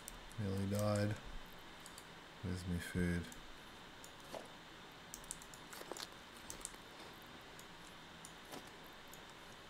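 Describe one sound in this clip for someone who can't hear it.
Soft interface clicks tick now and then as items are moved.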